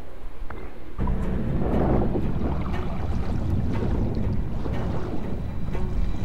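Water rumbles and bubbles as a swimmer moves underwater.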